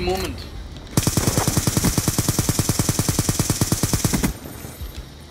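A rifle fires in a rapid, steady burst.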